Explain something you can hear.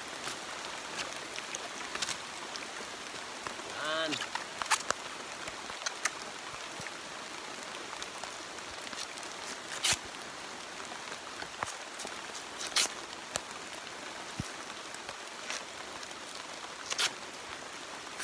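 A knife scrapes and shaves bamboo in short strokes.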